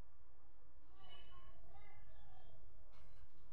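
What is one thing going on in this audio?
A young woman talks softly nearby.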